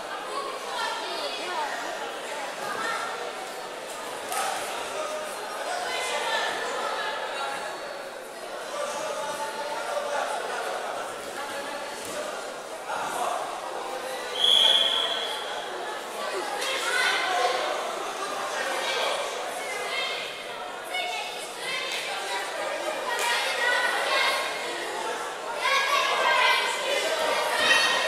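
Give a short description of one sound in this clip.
A crowd of spectators chatters and shouts throughout a large echoing hall.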